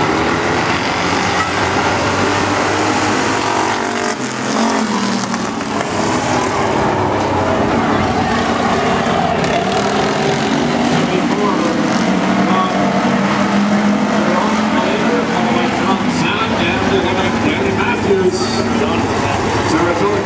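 Race car engines roar loudly around an outdoor track.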